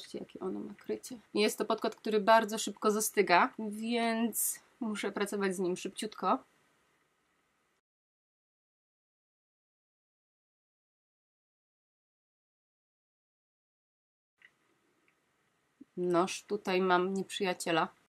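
A woman talks calmly and close up, into a microphone.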